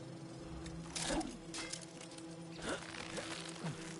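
A climbing rope rattles and swishes against rock.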